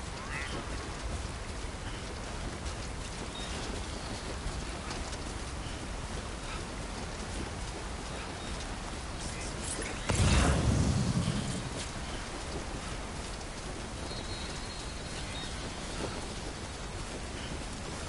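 Footsteps tread softly over grass.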